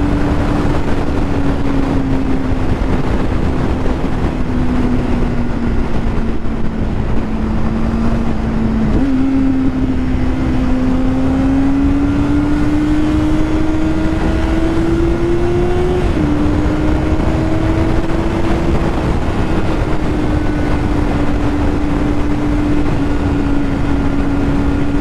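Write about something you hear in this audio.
Wind roars past loudly.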